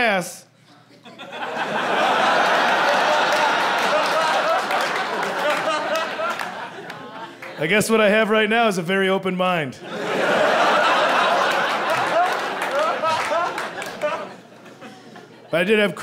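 An audience laughs and cheers loudly in a large room.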